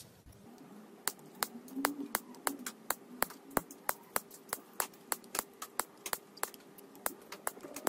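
Wire cutters snip through thin metal leads with sharp clicks.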